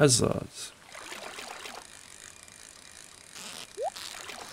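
A fishing reel whirs steadily as the line is reeled in.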